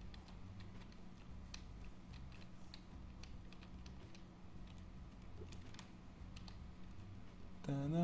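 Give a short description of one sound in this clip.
Small light footsteps patter quickly.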